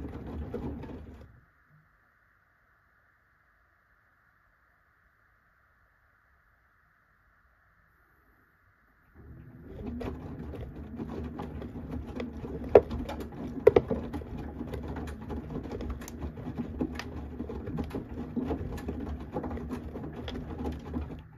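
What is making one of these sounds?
A washing machine drum churns laundry through sloshing water.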